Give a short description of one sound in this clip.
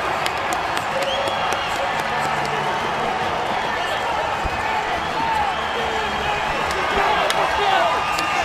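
Players clap their hands.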